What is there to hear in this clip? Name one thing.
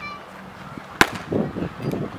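A baseball smacks sharply into a leather glove.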